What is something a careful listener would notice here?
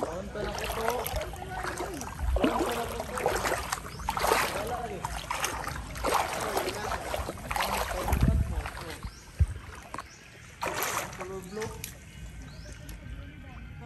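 Water laps and splashes gently close by.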